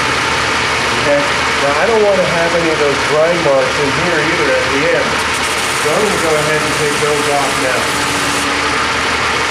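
A steel knife blade grinds against a spinning wheel.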